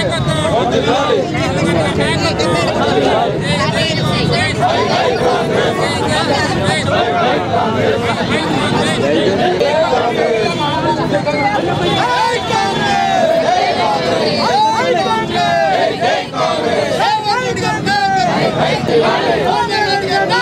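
A crowd of men and women talks and cheers loudly close by.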